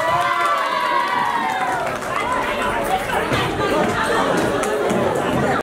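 Lively music plays loudly over loudspeakers in a large hall.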